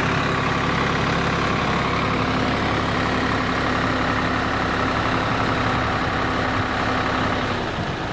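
Soil pours and slides out of a tipping trailer.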